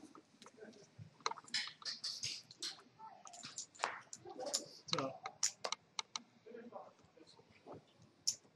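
Poker chips click and clatter against each other.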